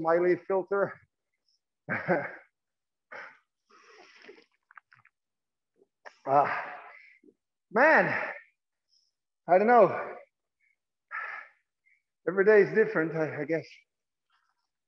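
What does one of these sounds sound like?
A man speaks with animation through a face mask, in an echoing room.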